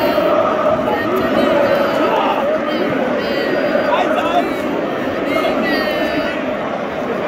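A large stadium crowd whistles shrilly.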